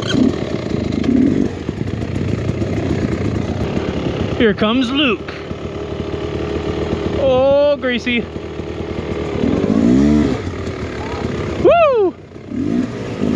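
A dirt bike engine revs up and down close by.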